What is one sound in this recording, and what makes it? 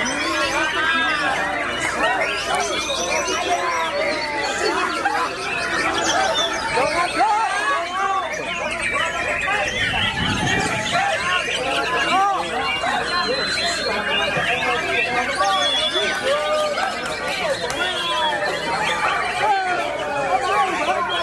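A songbird sings a rich, varied song close by.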